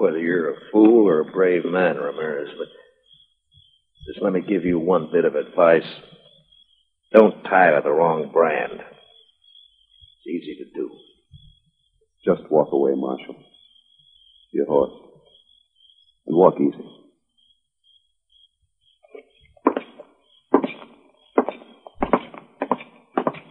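An old radio plays with a muffled, tinny sound.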